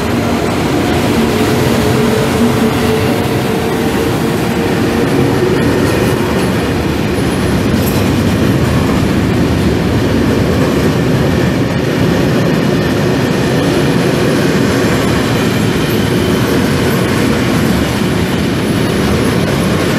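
Freight wagon wheels rumble and clatter over the rails.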